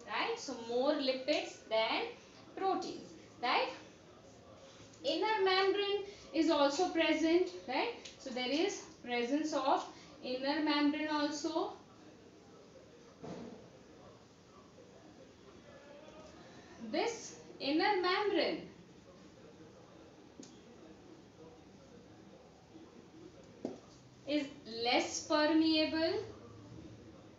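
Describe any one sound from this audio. A woman speaks calmly and clearly, close by, in bursts with pauses.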